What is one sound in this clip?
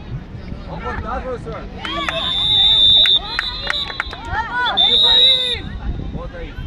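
Young women shout and cheer loudly nearby, outdoors.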